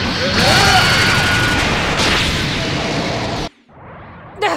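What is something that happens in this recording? An energy blast explodes with a loud roar.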